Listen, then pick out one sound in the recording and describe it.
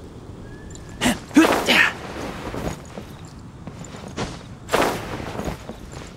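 A sudden whoosh of air rushes past.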